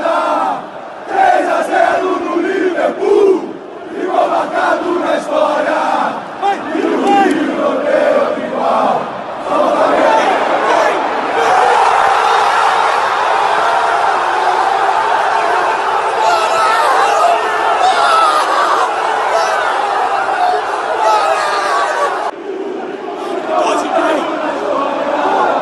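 A large stadium crowd chants and cheers.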